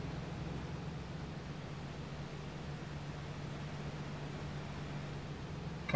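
Tyres roll over asphalt with a steady rumble.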